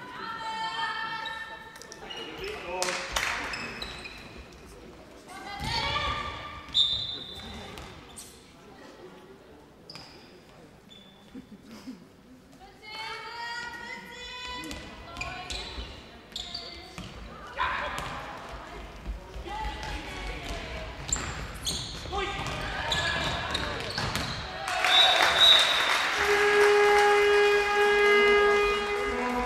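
A ball bounces on a hard floor in an echoing hall.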